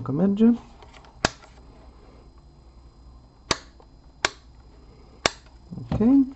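A dial on a device clicks as it is turned.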